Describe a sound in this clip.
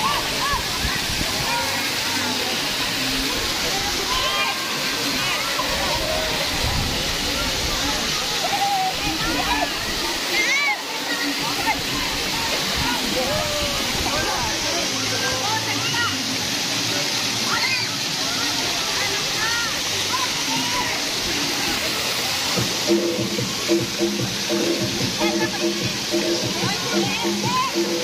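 Children shout and squeal excitedly close by.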